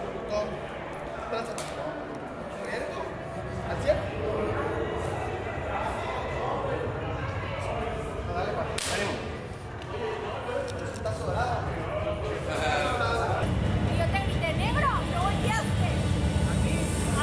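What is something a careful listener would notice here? A crowd of men chatters and laughs in the background.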